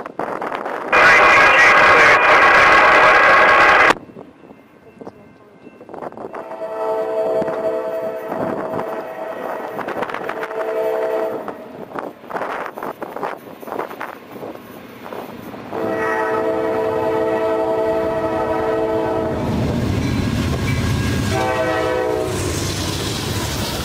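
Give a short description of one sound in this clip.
A train horn blows loudly in long blasts.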